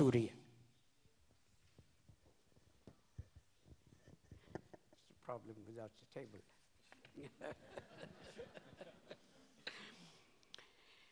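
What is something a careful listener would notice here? An elderly man speaks haltingly into a microphone.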